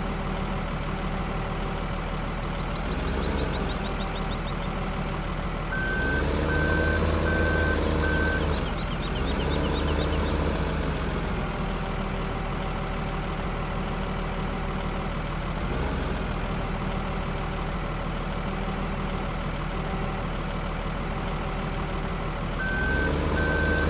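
A loader's diesel engine runs steadily and revs up at times.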